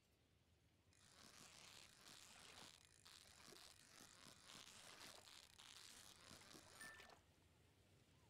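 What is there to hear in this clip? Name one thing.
A fishing reel whirs and clicks in a video game.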